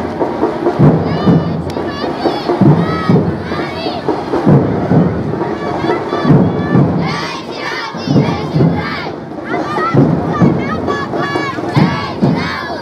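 A crowd of women and girls chants together outdoors.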